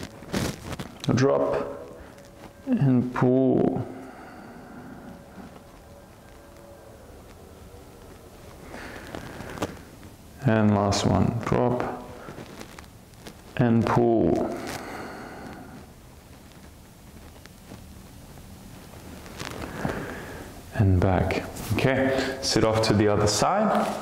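A woman speaks calmly and slowly, with long pauses, close to a microphone.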